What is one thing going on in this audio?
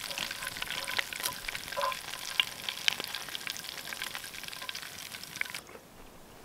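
A fork scrapes and clicks against a metal pan.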